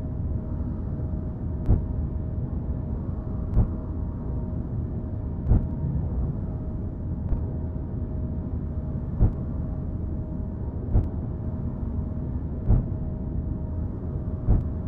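A drill rumbles and grinds steadily through rock.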